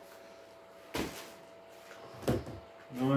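A chair part knocks with a sharp clack.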